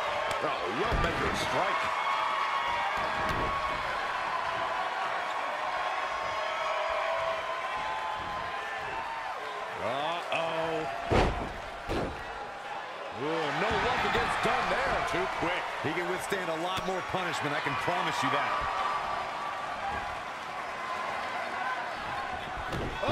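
A crowd cheers and roars throughout.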